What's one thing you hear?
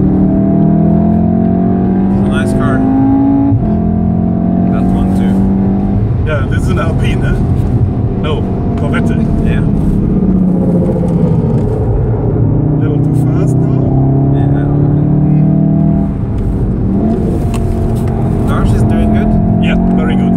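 Tyres hum and rumble on the road at high speed.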